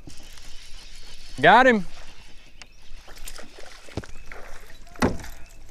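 A fishing reel clicks as a line is wound in.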